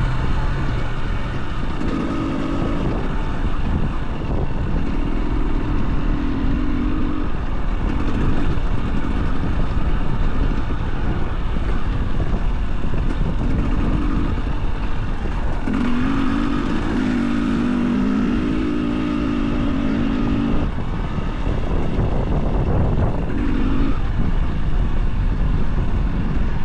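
Wind buffets loudly across the rider.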